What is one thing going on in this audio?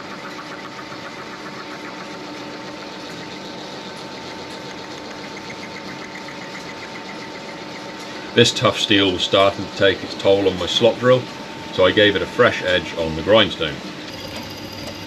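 A drill press cuts into metal with a steady whirring hum.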